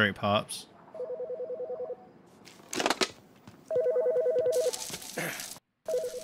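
A phone tone beeps in quick, steady bursts.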